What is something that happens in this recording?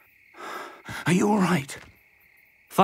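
An elderly man asks a question kindly.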